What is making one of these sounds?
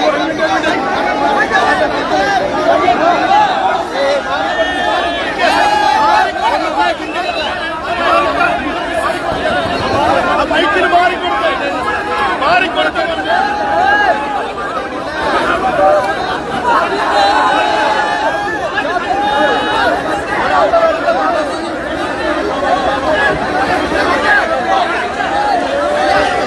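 A large crowd of young men cheers and shouts loudly outdoors.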